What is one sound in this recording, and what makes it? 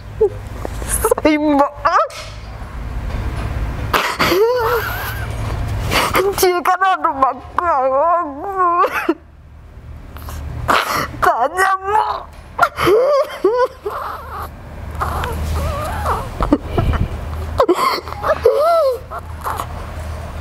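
A young woman sobs and wails loudly close by.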